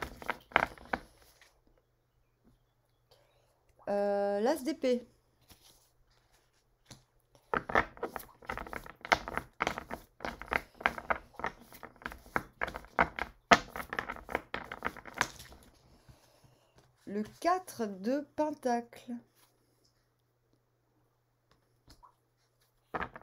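A woman talks calmly and close by, with pauses.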